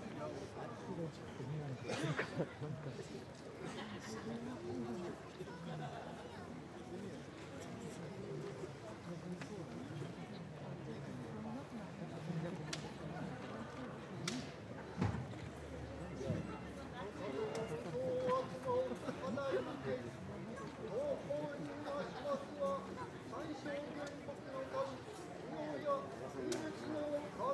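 Men talk quietly nearby.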